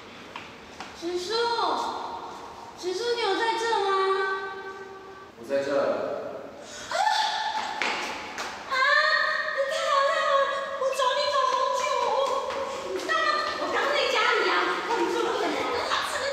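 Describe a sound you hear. A young woman calls out and speaks in a pleading voice, echoing slightly.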